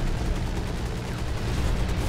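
A heavy gun fires a burst.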